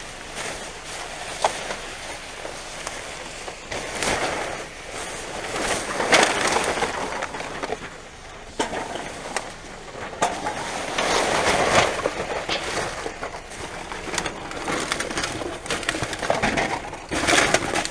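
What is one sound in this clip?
Plastic bags rustle and crinkle as a gloved hand rummages through rubbish.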